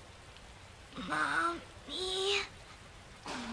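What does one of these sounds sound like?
A young girl speaks softly.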